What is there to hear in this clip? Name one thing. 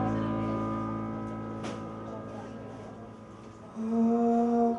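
A keyboard chord rings out and slowly fades away.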